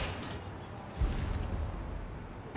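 A heavy thud lands on a hard surface.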